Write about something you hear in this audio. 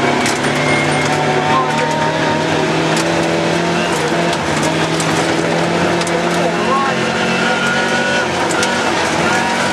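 Gravel rattles and crunches under the tyres.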